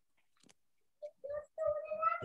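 A young girl speaks briefly through an online call.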